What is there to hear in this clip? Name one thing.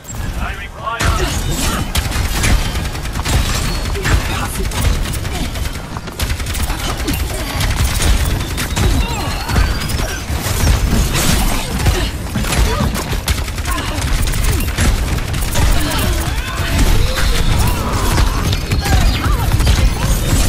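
Rapid gunfire and energy blasts crackle and thump.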